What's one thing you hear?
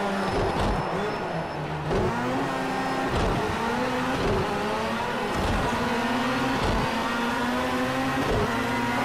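A rally car engine revs hard, rising and dropping in pitch with each gear change.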